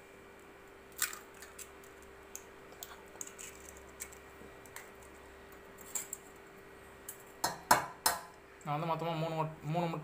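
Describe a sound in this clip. An eggshell cracks and crunches as it is pulled apart.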